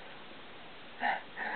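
A puppy gives a short high yip.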